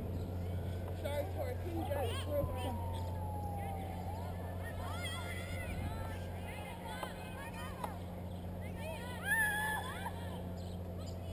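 Young women call out and shout to each other across an open field.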